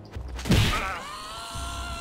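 A heavy club strikes a creature with a dull thud.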